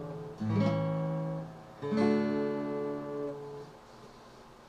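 A guitar plays a few ringing notes.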